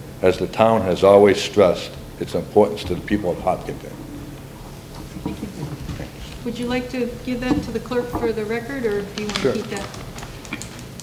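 A middle-aged man speaks into a microphone at a lectern.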